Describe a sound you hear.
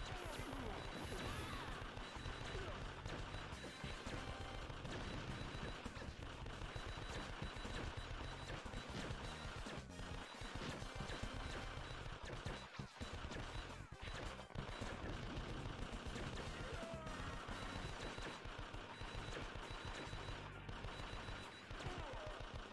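Gunfire and explosions crackle from an arcade game.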